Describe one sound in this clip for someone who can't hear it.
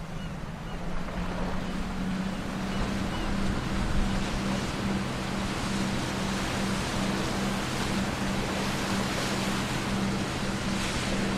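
Water splashes and washes against a boat's hull.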